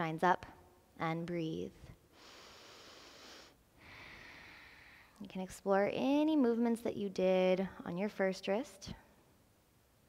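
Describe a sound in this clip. A young woman speaks calmly and clearly, as if instructing, into a close microphone.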